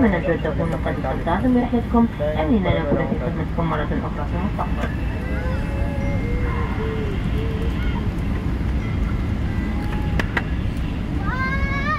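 A jet airliner's engines rumble steadily, heard from inside the cabin.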